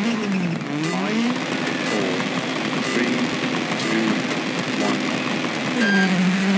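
A car exhaust pops and crackles with backfires.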